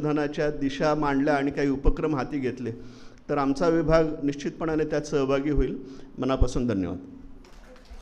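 A middle-aged man speaks firmly through a microphone.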